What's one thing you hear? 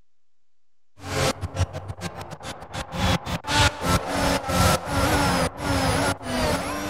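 A racing car engine roars at high revs, rising in pitch and dropping sharply at each gear change.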